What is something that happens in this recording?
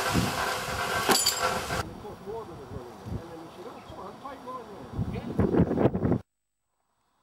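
Metal tools clank against rails.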